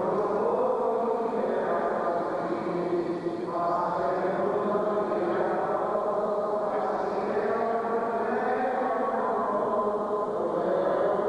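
A group of men chant together, echoing in a large room.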